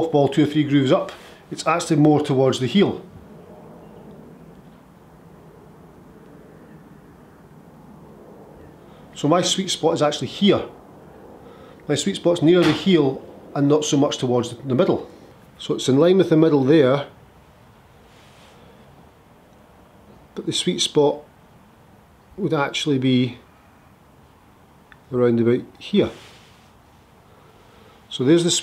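A man speaks calmly and clearly into a close microphone, pausing between phrases.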